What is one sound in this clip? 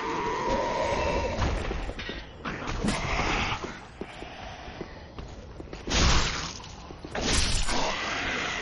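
Swords clash and strike in a fight.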